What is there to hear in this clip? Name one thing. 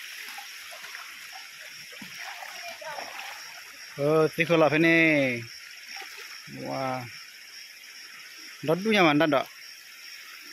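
A stream flows and babbles steadily.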